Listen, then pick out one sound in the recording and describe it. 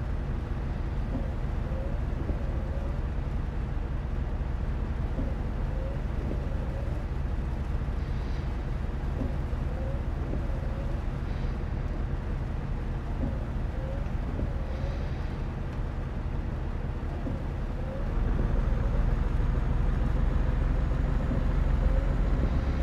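Windshield wipers swish back and forth at a steady pace.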